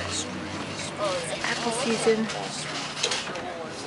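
Adults chat nearby outdoors.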